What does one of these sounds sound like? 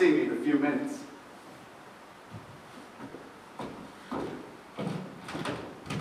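Footsteps thud on a wooden stage floor.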